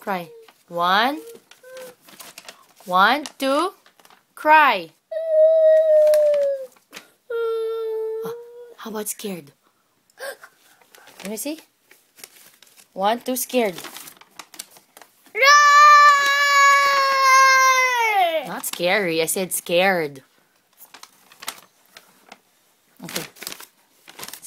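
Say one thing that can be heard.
A young boy talks and sings playfully close by, with long drawn-out notes and loud shouts.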